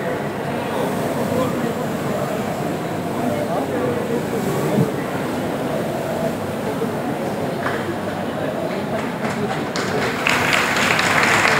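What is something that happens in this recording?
A crowd of men and women murmur and talk nearby in a large echoing hall.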